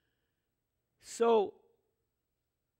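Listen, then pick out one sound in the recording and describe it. An elderly man speaks a short word through a microphone.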